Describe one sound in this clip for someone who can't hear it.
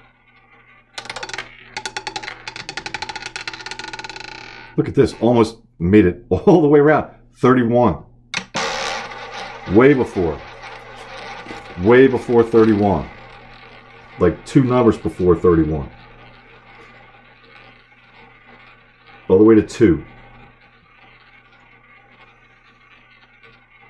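A roulette ball rolls and rattles around a spinning wheel.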